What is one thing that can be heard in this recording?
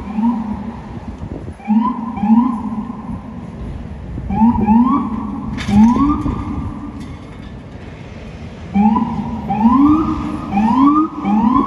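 A police siren whoops in short, rising bursts nearby.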